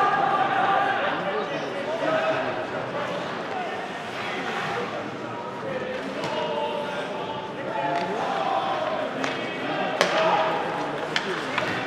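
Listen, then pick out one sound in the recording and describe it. Skates scrape and hiss across the ice in a large echoing hall.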